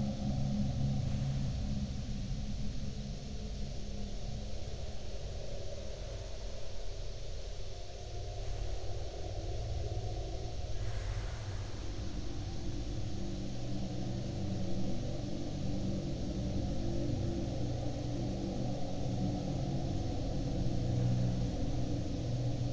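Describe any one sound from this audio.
A dance band plays muffled, old-fashioned music.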